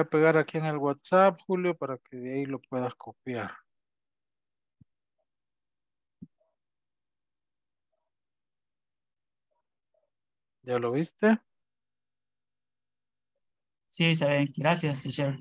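A man speaks calmly through an online call, in bursts with long pauses.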